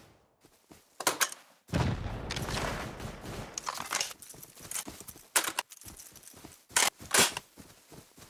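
A rifle clicks and clatters while being reloaded.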